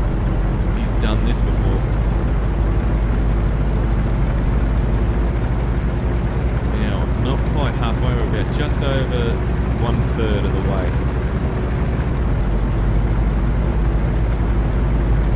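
A truck engine rumbles steadily.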